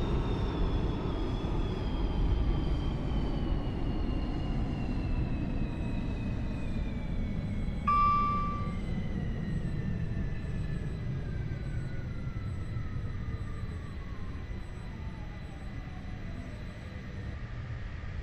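A train's electric motor whines and falls in pitch as the train slows down.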